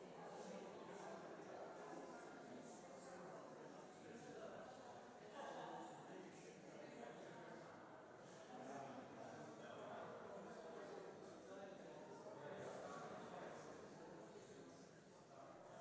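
A crowd of adults chats in many overlapping voices, echoing in a large hall.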